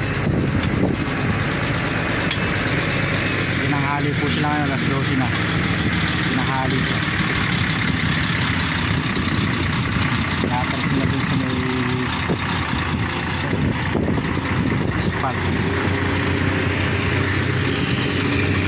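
A heavy truck engine rumbles steadily up close.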